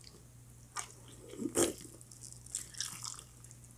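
A woman chews and smacks her lips loudly close to a microphone.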